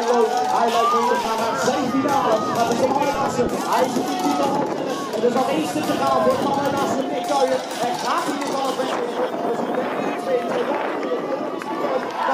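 A large crowd outdoors chatters and cheers loudly.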